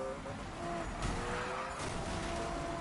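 A car scrapes against another car.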